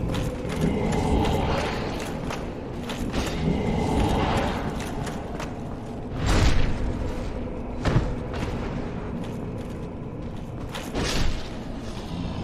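Metal weapons clash and strike with sharp blows.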